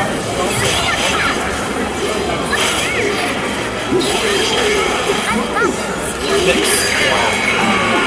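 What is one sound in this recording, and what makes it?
Swords clash and slash with sharp metallic swishes.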